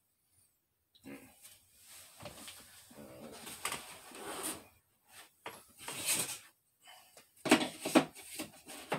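An electric piano plays a lively tune, close by.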